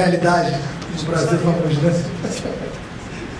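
A man speaks into a microphone over loudspeakers in a large room.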